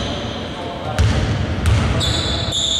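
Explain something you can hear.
A basketball bounces on a hard court in an echoing hall.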